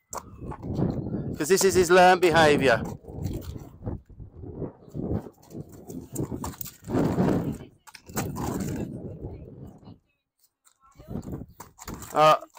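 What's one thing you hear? A horse's hooves thud and clatter on a wooden ramp.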